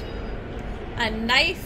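A young woman speaks into a close microphone with animation.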